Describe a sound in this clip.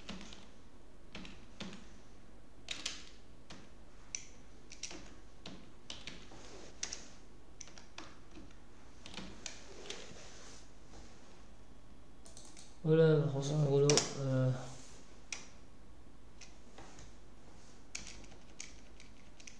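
Keys click as someone types on a keyboard.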